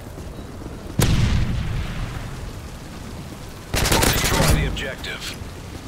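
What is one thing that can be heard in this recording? Loud bursts of rifle fire ring out close by.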